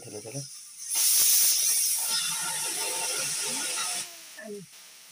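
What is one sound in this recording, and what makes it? A pressure cooker hisses loudly as steam escapes.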